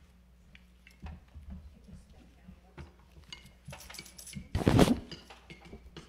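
Children shake and tap small tambourines that jingle.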